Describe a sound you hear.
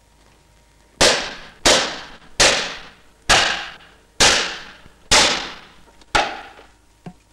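A pistol fires a rapid series of loud shots that echo briefly.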